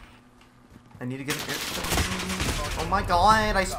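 Gunfire bursts from a video game.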